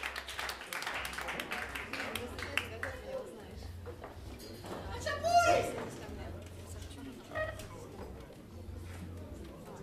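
A band plays jazz live.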